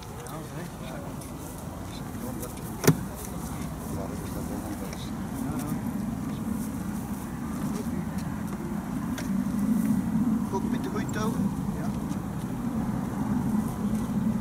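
Men talk quietly nearby, outdoors in the open.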